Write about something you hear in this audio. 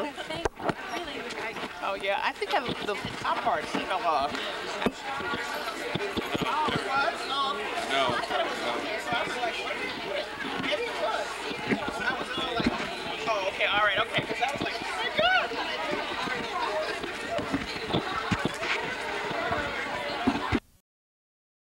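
A large crowd of men and women chatters loudly all around in an echoing hall.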